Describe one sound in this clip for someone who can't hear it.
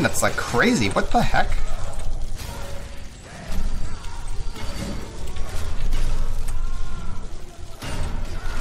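Weapons clash and thud in a fight.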